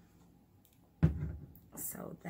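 A plastic bottle knocks down onto a table.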